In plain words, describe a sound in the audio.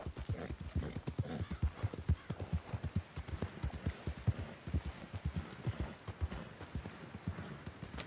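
Hooves thud rapidly on soft ground as a horse gallops.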